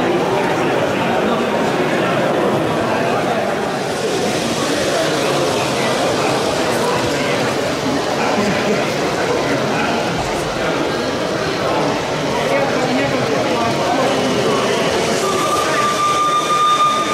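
Many people chatter around in a busy echoing hall.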